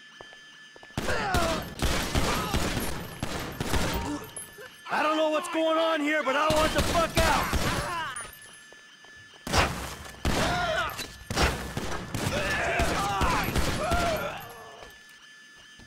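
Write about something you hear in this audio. Gunshots ring out in rapid bursts, echoing off hard walls.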